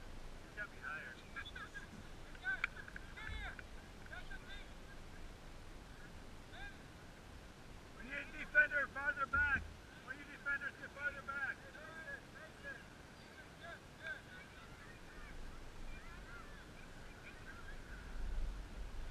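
Young children talk and call out nearby, outdoors in an open field.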